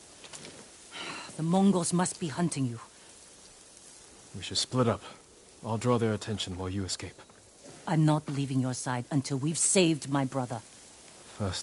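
A young woman speaks urgently, close by.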